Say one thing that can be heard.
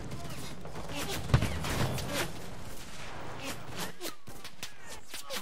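Gunshots crack and echo in the distance.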